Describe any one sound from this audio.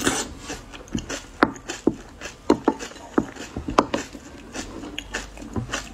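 A wooden spoon scrapes and clinks against a glass bowl.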